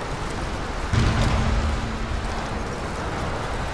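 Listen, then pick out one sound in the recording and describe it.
A large metal bell swings and booms with a low ringing tone.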